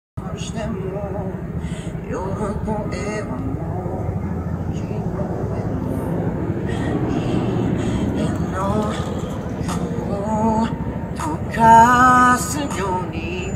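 A young man sings into a microphone through a loudspeaker outdoors.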